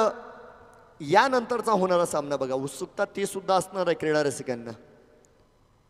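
A man talks loudly in short bursts.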